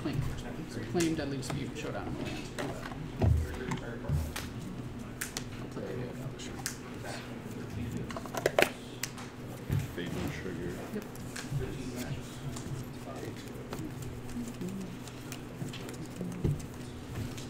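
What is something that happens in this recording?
Cards tap and slide on a soft play mat.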